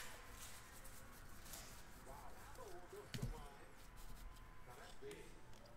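Trading cards slide and rustle against each other in a person's hands.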